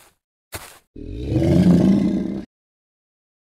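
A dinosaur growls loudly.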